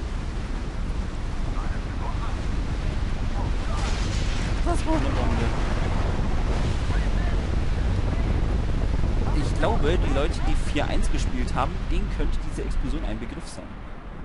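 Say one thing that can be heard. A strong wind roars and howls.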